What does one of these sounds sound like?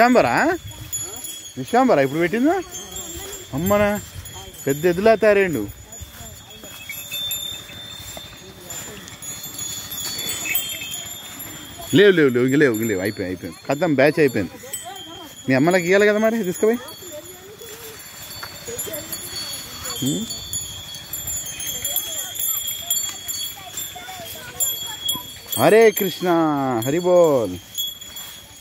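Cattle moo loudly nearby, again and again.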